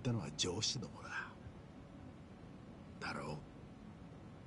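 A man speaks in a low, questioning voice.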